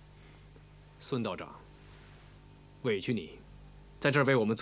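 A young man speaks firmly nearby.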